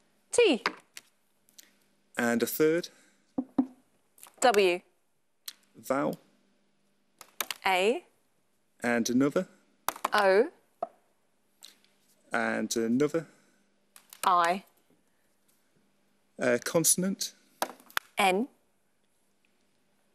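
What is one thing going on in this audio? Letter cards clack into place on a board.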